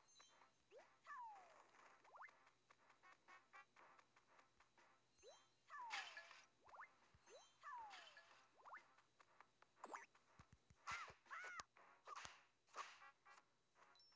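Sword swipes whoosh with rising and falling chimes.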